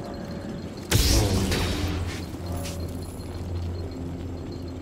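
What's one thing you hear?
A lightsaber hums with a low, steady drone.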